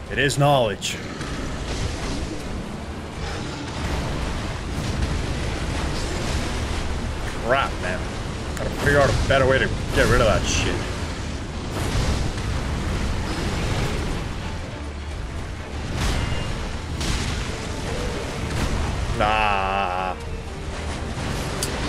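Water splashes heavily as a huge beast stomps and lunges.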